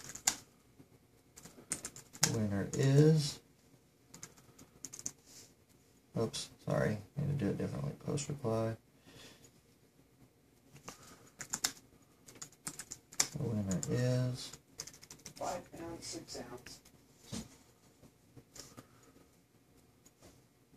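A man types quickly on a laptop keyboard.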